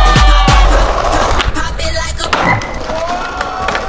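Skateboard wheels roll and clatter over stone paving.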